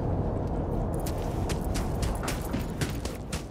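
Footsteps crunch on dry, gritty ground.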